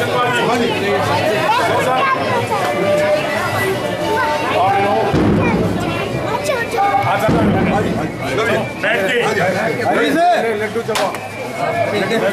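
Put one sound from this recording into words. A crowd murmurs in the background.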